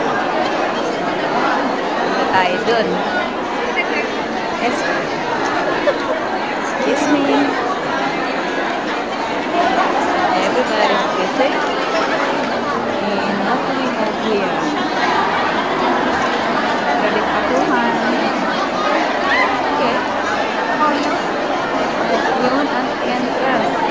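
A large crowd of men and women chatters loudly all around in a large echoing hall.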